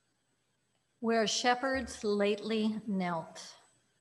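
An elderly woman speaks calmly into a microphone in a reverberant hall.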